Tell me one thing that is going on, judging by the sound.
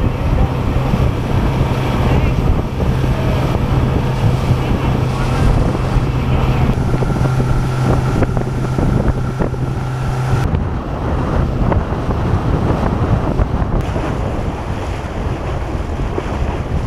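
Wind buffets loudly across the boat.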